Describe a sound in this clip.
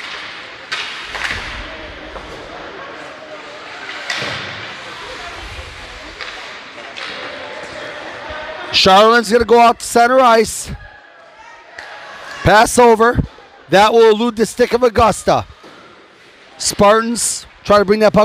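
Skates scrape across the ice.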